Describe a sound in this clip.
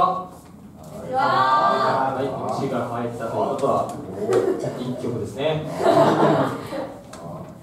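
A young man sings into a microphone over loudspeakers.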